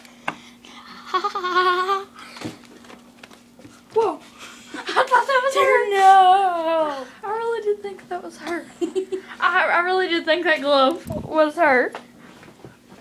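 A cat meows loudly and drawn out, close by.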